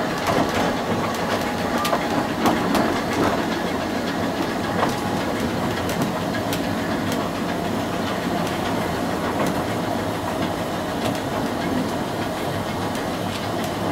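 Train wheels click over rail joints and points.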